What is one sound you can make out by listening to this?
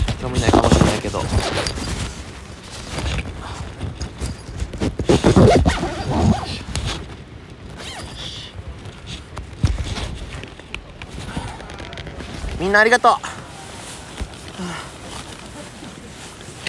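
A nylon jacket rustles.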